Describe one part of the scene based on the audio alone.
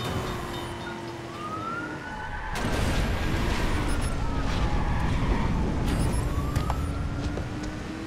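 Tyres screech as a car skids and drifts.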